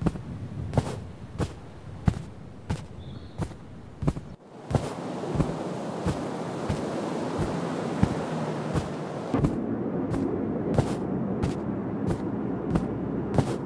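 Small cartoon footsteps tap along at a steady pace.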